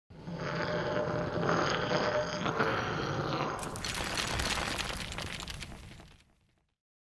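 A burst of dust whooshes and crackles, then fades away.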